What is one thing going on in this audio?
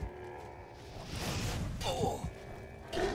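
A burst of fire whooshes and roars.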